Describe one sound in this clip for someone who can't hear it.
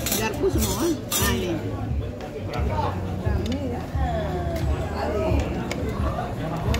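Cutlery clinks lightly against plates.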